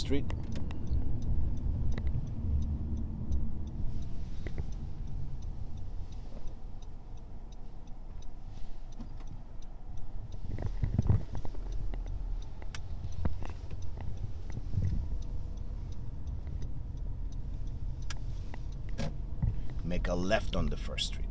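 A car engine hums low and steady while driving.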